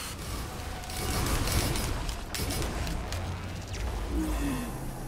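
Magical spell effects whoosh and crackle in bursts.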